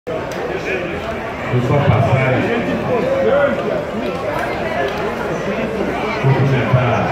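A man speaks with animation into a microphone over loudspeakers in an echoing room.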